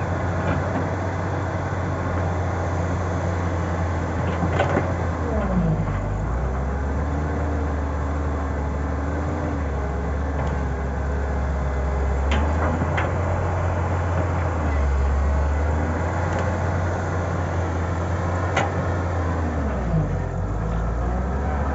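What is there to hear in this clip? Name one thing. An excavator's diesel engine rumbles steadily and revs up at times.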